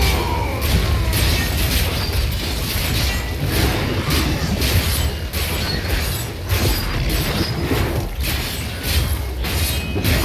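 Monsters screech and growl in battle.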